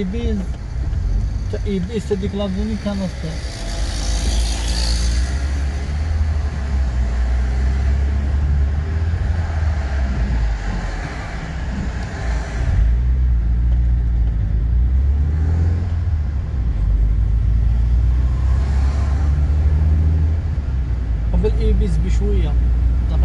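A car engine hums with a steady low road rumble from inside a moving car.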